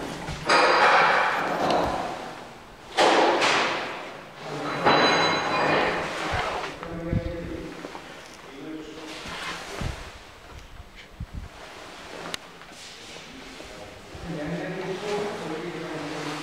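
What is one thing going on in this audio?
A lift hums as it moves.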